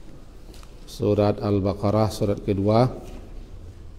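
A middle-aged man speaks calmly and closely into a microphone.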